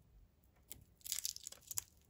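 Foil wrapping crinkles as it is peeled off a chocolate egg.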